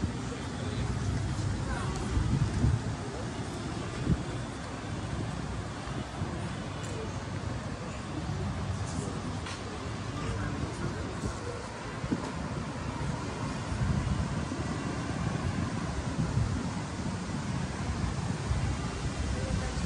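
Wind blows steadily outdoors in gusts.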